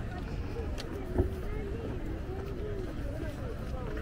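Women chat casually nearby as they walk past.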